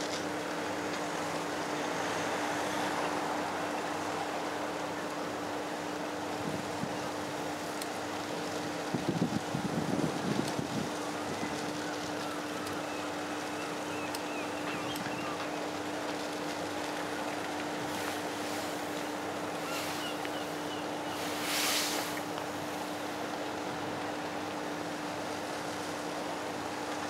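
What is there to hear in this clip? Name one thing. A large ship's engine hums low and steadily in the distance.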